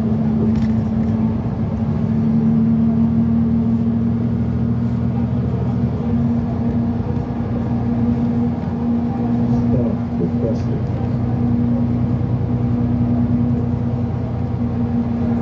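A bus engine hums steadily from inside the vehicle.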